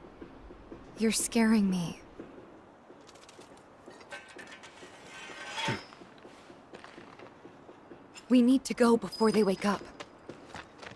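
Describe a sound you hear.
A young woman speaks softly and anxiously.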